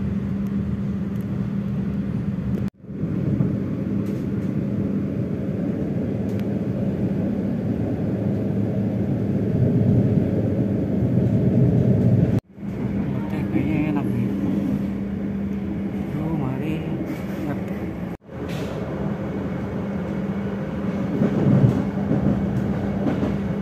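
A train rumbles and hums steadily as it rolls along the tracks.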